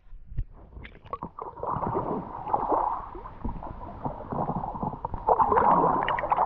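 Water splashes and gurgles close by as a paddle dips in.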